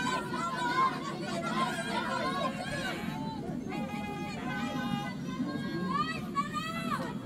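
Young women shout and call to each other across an open outdoor field.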